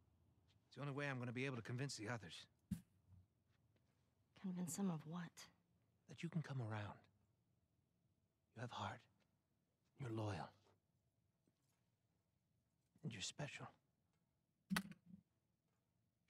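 A man speaks calmly and softly.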